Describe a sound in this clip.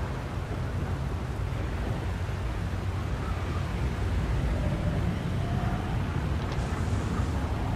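Flames roar and crackle steadily.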